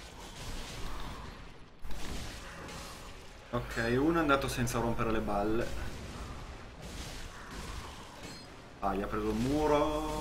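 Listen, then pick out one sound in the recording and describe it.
Swords clash and clang.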